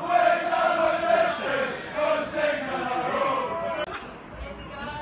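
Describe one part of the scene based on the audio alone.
A crowd of spectators chatters loudly nearby.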